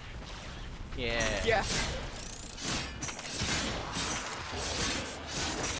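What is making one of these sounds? Game weapons fire and energy blasts crackle in bursts.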